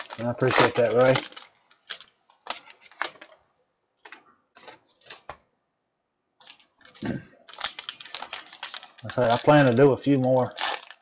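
A plastic card wrapper crinkles and tears as hands open it.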